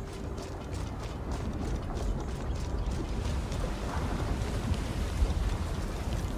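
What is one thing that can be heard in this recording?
Lava rumbles low and steadily.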